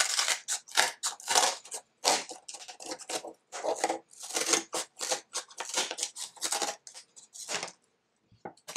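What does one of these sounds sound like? Scissors snip through thick cardboard.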